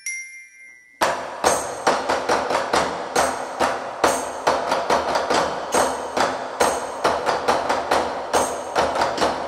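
Drumsticks beat a lively rhythm on plastic buckets.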